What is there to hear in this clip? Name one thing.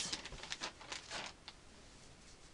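Fabric rustles as a shirt is handled.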